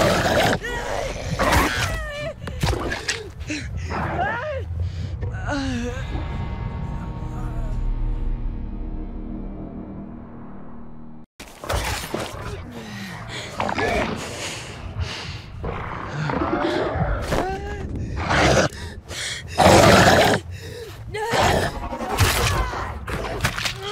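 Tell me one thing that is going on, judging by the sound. A monstrous creature growls and roars up close.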